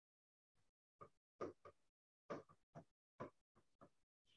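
A pen taps lightly on a board.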